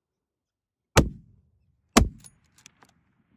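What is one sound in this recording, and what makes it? A rifle fires two loud, sharp shots that echo briefly across open ground.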